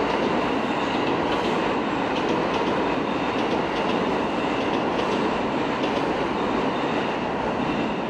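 Train wheels squeal and click on the rails.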